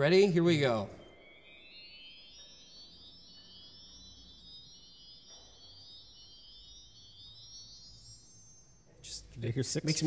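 A pipe organ plays soft, high notes.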